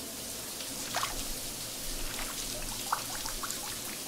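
Water sloshes and splashes in a bathtub.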